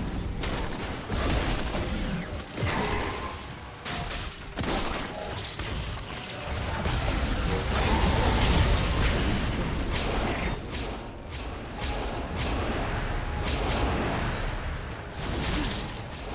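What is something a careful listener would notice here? Magic blasts, zaps and crashes go off rapidly in a busy fight.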